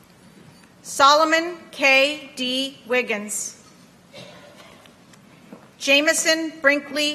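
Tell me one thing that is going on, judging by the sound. A man reads out clearly through a loudspeaker.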